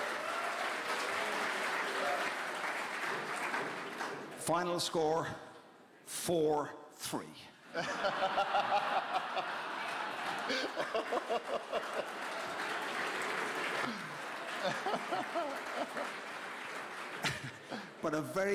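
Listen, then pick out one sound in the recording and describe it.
An elderly man speaks with animation through a microphone in a large hall.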